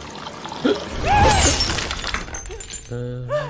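A man chokes and gasps loudly.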